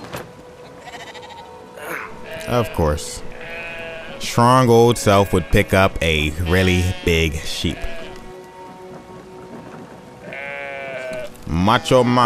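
Sheep bleat nearby.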